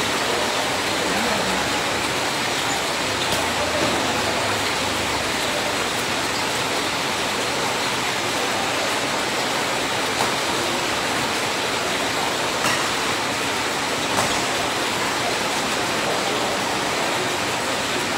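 Shoes squeak and patter on a hard court.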